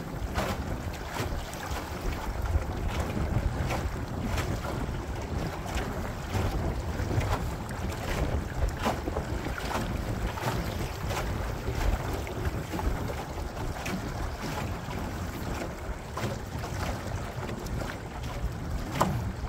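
Small waves slap against the hull of a boat.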